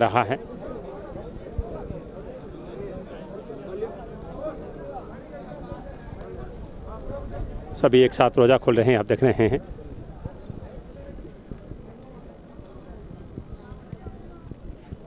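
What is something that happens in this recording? A crowd of men murmurs and chatters in the background.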